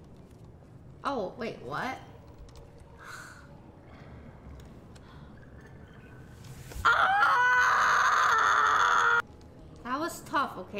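A young woman talks excitedly into a microphone, her voice rising and falling in pitch.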